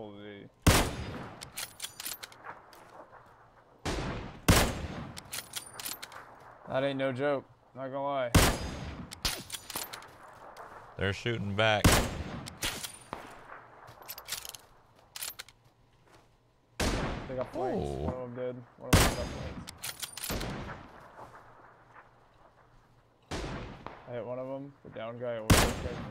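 Loud rifle shots crack with a rolling echo.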